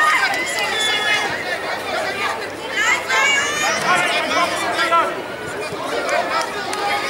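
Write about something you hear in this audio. A crowd of adults and children shouts and cheers outdoors.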